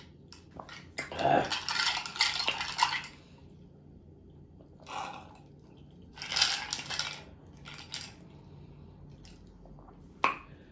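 Ice rattles in a glass as a straw is stirred.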